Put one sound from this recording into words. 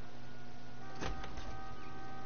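A metal door bangs open.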